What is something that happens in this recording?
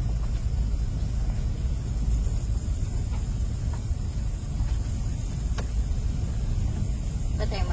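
A car engine rumbles low and steady as the car drives slowly.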